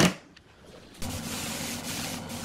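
An air hose hisses as it blows.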